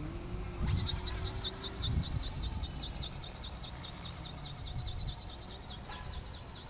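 Wind blusters outdoors.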